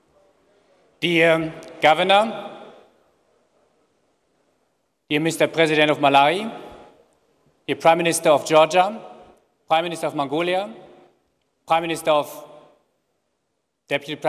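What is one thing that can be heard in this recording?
A young man speaks calmly through a microphone in a large hall.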